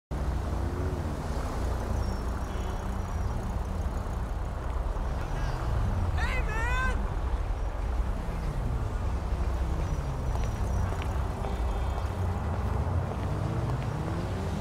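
Car engines rumble and hum as traffic drives past nearby.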